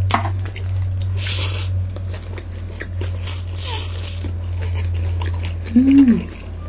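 A young woman slurps noodles loudly close to a microphone.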